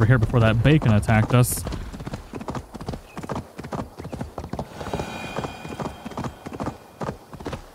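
A horse's hooves thud steadily on a dirt path at a trot.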